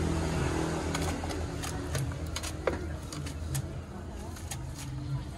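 Chopsticks and a strainer clink against a metal pot.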